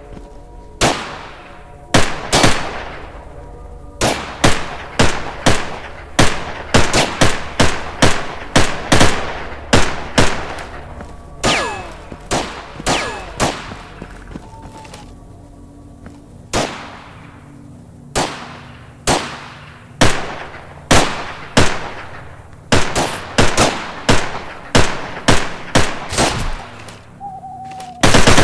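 Rifle shots ring out one at a time, each echoing off into the distance.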